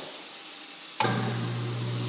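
A wall switch clicks.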